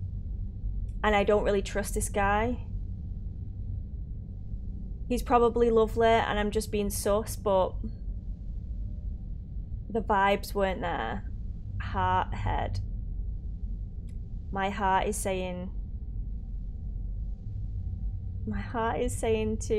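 A young woman talks into a microphone close up, with animation, in short bursts.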